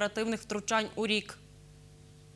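A young woman speaks clearly into a microphone, reading out.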